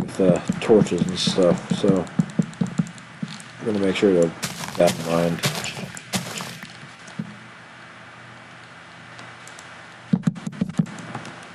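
Wooden blocks thud as they are placed.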